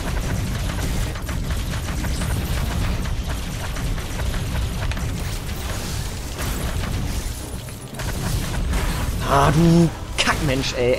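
Energy blasts fire and crackle in quick bursts.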